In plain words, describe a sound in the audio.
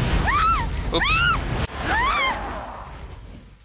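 Flames burst with a roar.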